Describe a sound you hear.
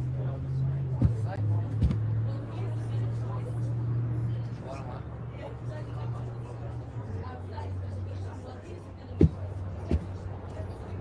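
A paper cup taps on a wooden table.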